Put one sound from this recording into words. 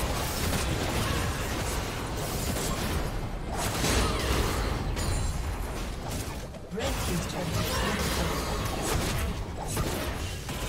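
Game combat effects whoosh and crackle as spells are cast.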